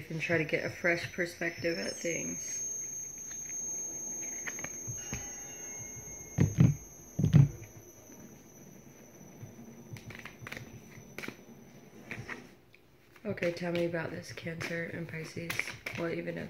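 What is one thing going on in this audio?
A woman shuffles a deck of cards.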